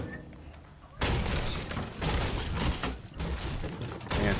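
A pickaxe strikes wood with sharp, repeated knocks.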